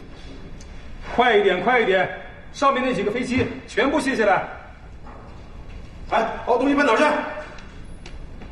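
An adult man shouts urgent orders in a large room.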